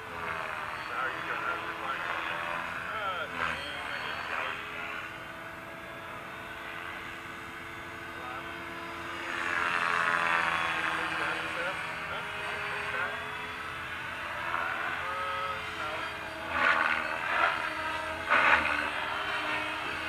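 A small model plane's engine whines overhead, rising and falling in pitch as the plane circles.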